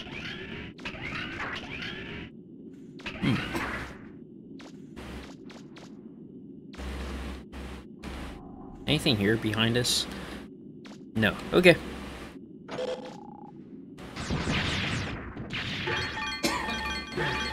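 Light robotic footsteps patter quickly.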